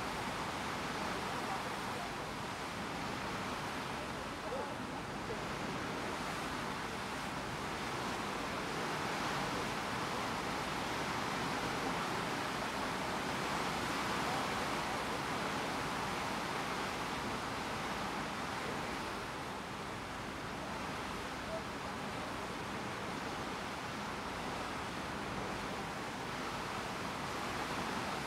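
Water rushes past a ship's hull.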